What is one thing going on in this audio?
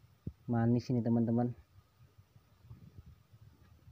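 Fruit rustles softly as a hand picks it from a woven basket.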